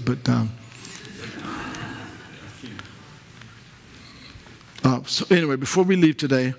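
A man speaks calmly through a headset microphone, heard in a room with a slight echo.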